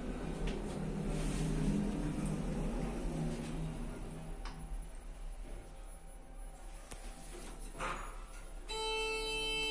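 An elevator car hums and rumbles as it moves.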